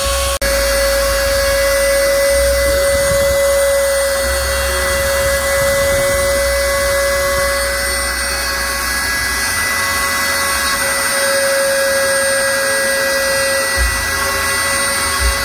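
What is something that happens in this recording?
A router bit cuts into wood with a rough grinding noise.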